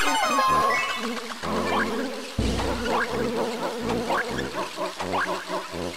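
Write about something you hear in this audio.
Bouncy video game music plays throughout.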